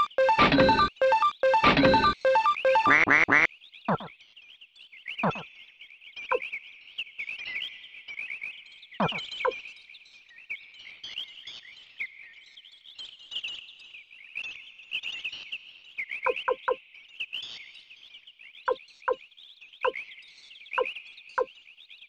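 Short electronic menu blips sound as a cursor moves through a list.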